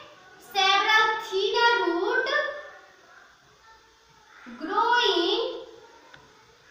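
A young woman speaks clearly, as if explaining to a class.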